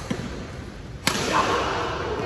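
A racket smacks a shuttlecock.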